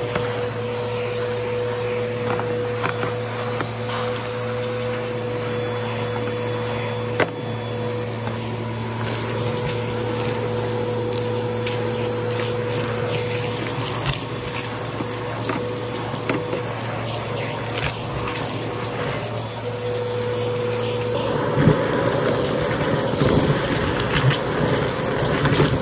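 A vacuum cleaner hums steadily with a high whine.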